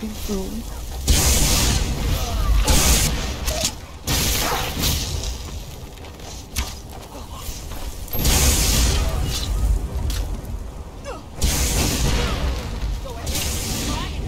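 Weapons clash and strike in a loud fight.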